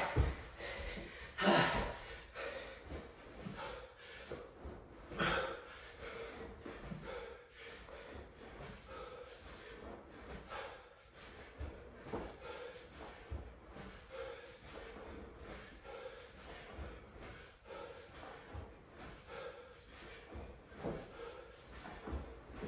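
A man breathes hard in rhythm while exercising.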